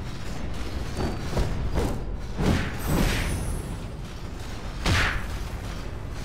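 Whooshing spell blasts burst loudly several times.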